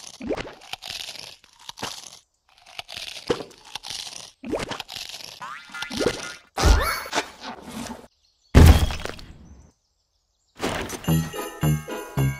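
A mobile game plays bursts of cartoon sound effects.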